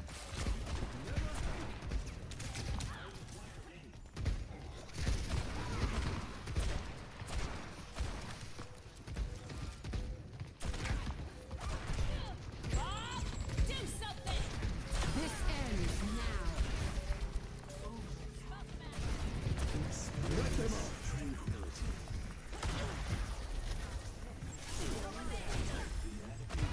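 Guns fire in rapid bursts with sharp bangs.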